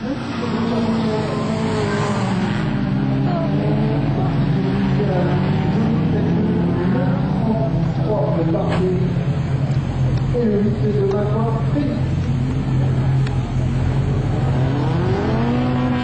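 Spectators shout in alarm close by.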